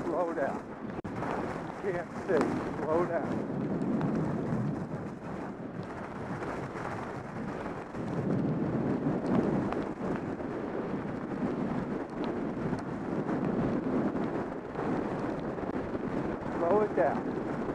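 Wind rushes against a microphone.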